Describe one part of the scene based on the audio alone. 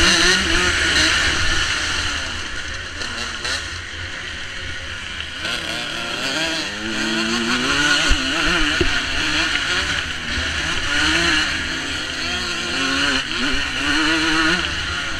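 A dirt bike engine revs and whines up close, rising and falling in pitch.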